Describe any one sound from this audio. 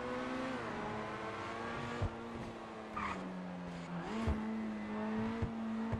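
A car engine hums steadily and shifts pitch as the car changes gear.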